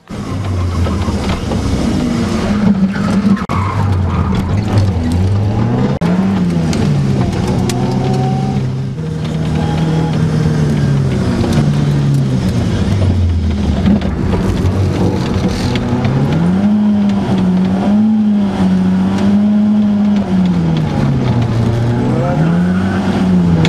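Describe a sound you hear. A turbocharged four-cylinder rally car engine revs up and down through the gears, heard from inside the cabin.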